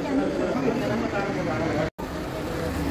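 A crowd of women talk over one another close by.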